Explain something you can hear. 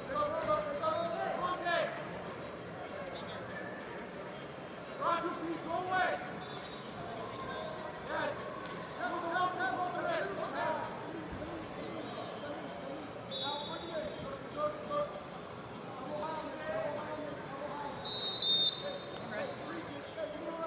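Spectators murmur and call out in a large echoing hall.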